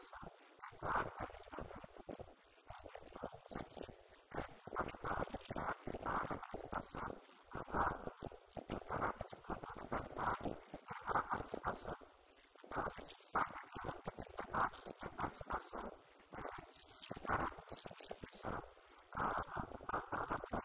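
A man speaks steadily into a microphone, heard through a loudspeaker in an echoing room.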